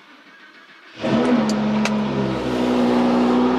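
A car engine roars to life.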